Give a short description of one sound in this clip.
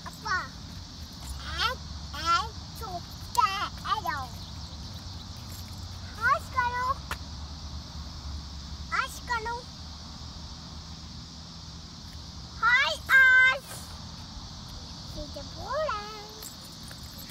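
A young child chatters and calls out nearby in a high voice.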